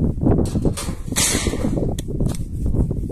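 A metal tray clatters on stones.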